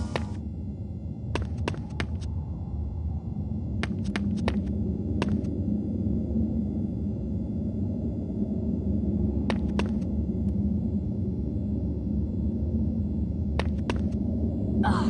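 Footsteps tap on a hard stone floor in a reverberant hall.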